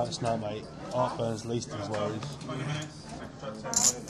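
A dealer slides playing cards across a felt table.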